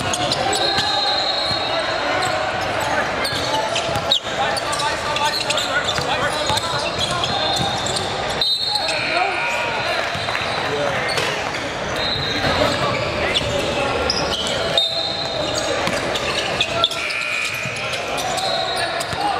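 A crowd murmurs and shouts in a large echoing gym.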